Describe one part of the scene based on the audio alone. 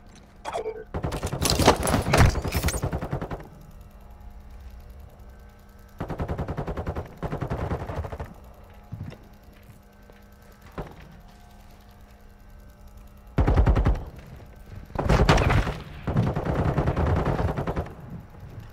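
A rifle fires rapid bursts of shots in a large echoing hall.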